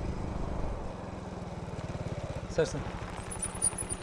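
A motorcycle engine putters past.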